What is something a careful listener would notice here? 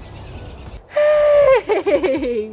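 A small dog yelps and whines.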